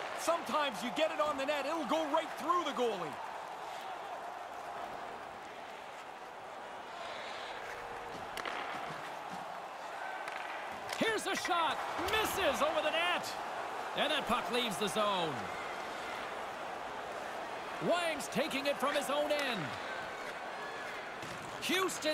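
Hockey sticks click against a puck.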